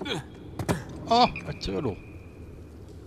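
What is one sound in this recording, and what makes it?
A young man cries out in surprise.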